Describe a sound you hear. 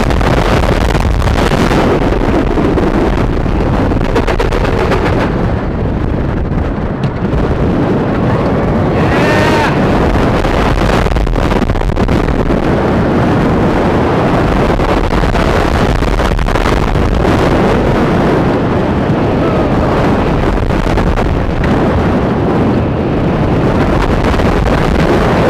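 A roller coaster train rumbles and clatters along its track.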